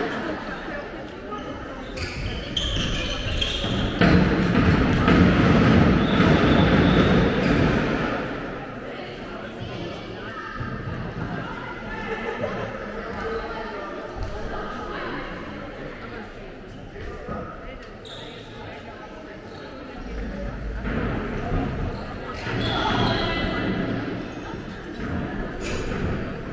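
Sneakers squeak on a hall floor.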